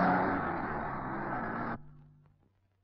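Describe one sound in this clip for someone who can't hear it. A car engine runs nearby.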